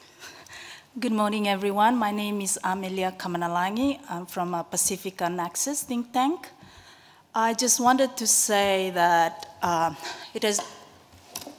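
A young woman speaks calmly and steadily into a microphone.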